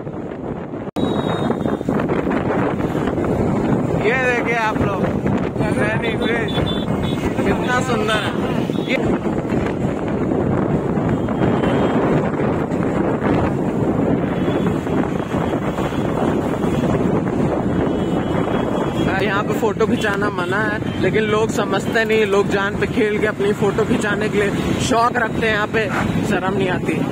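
Wind rushes and roars past while riding along a road.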